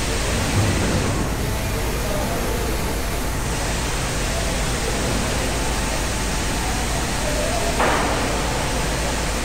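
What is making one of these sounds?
Ventilation air roars steadily through an echoing tunnel.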